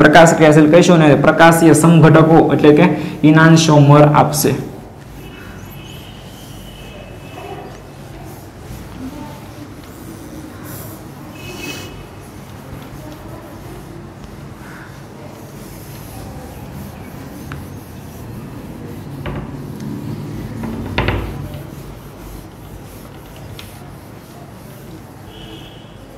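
A cloth rubs and squeaks across a whiteboard.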